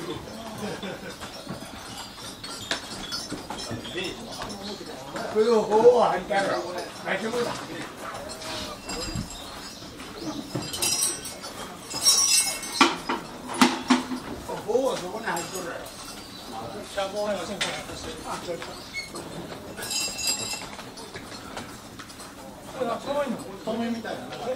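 An elderly man talks nearby.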